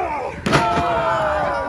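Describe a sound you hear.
A wrestler slams onto a ring's canvas with a loud thud.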